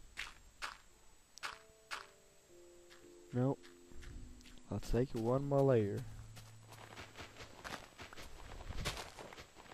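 Footsteps crunch softly on grass.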